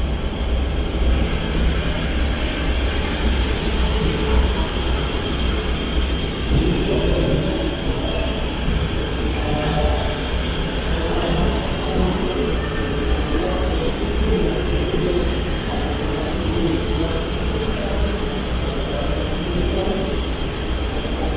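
A train rumbles slowly past along the tracks.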